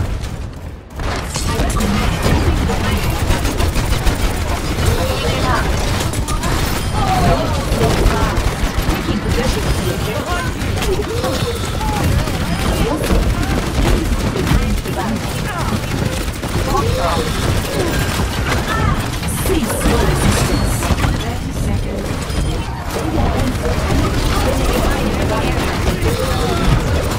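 A game weapon fires rapid bursts of shots.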